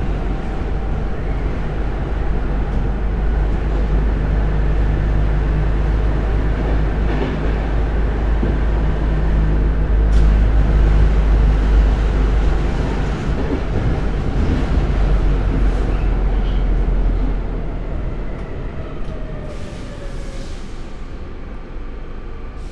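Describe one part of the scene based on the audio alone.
A subway train rumbles loudly along the tracks and slows down toward the end.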